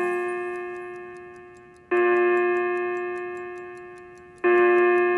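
A clock ticks steadily.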